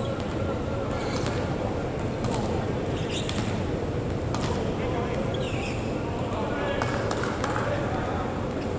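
Sports shoes squeak briefly on a hard court in a large echoing hall.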